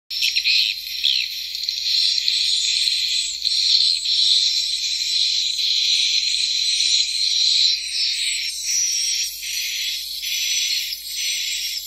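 A small tweeter speaker plays a thin, hissy, high-pitched sound with no bass.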